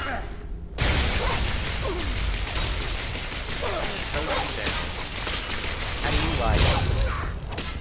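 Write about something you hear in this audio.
Electricity crackles and hisses loudly.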